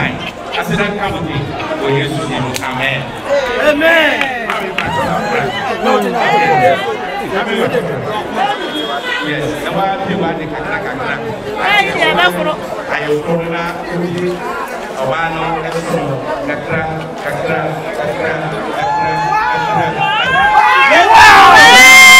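A crowd murmurs and voices overlap nearby.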